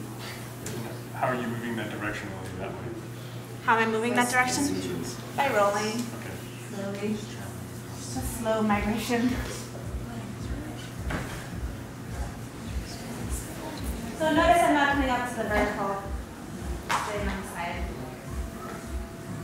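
A woman speaks calmly nearby in a large room.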